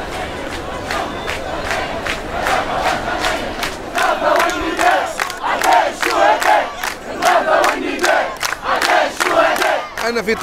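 Many people clap their hands in rhythm.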